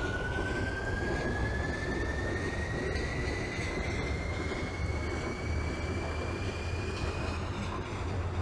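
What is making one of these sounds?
A subway train's electric motors whine and rise in pitch as it speeds up.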